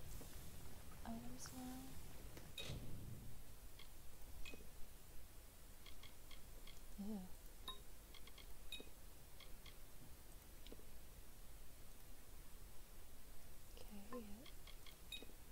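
A young woman speaks briefly and quietly into a close microphone.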